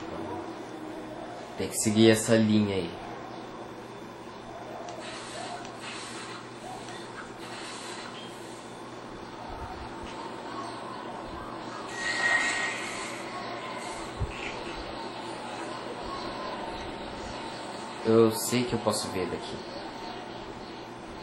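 Soft game music plays steadily throughout.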